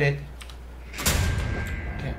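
A metal lever clanks as it is pulled.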